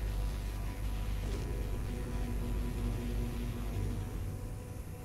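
A low mechanical hum drones, then fades.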